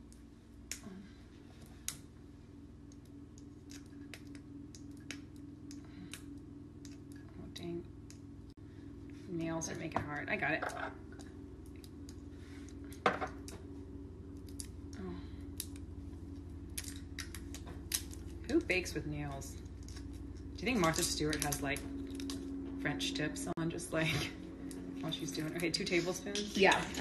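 Small clicks and taps come from a bottle being handled.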